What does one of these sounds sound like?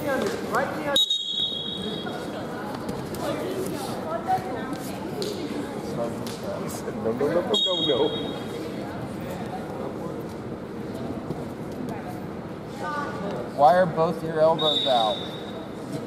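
A referee blows a whistle in short, sharp blasts.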